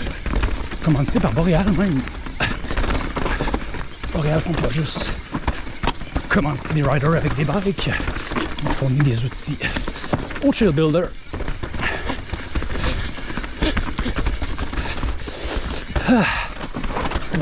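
Bicycle tyres crunch and roll over dirt and rocks.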